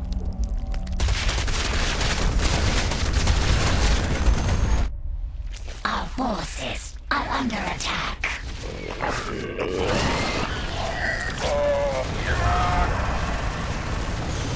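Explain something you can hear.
Rapid gunfire rattles in a battle.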